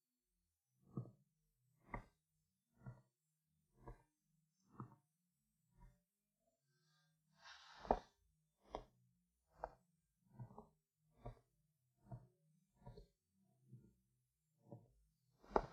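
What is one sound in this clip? Footsteps tread slowly across a room.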